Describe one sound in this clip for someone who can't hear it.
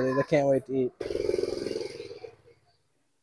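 A motorbike engine hums past.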